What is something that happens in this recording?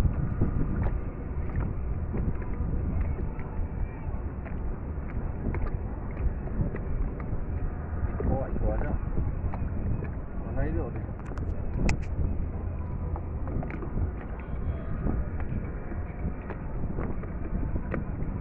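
Water splashes and laps against the side of a wooden boat.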